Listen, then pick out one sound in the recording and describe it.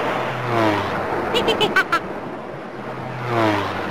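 A small propeller plane buzzes past.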